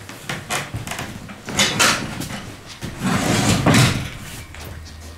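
A seat bench creaks and thumps as it is folded down.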